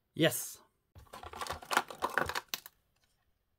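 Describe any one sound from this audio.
Small plastic parts rattle in a plastic drawer.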